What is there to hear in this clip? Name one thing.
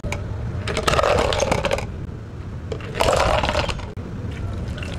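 Ice cubes clatter as they are scooped into plastic cups.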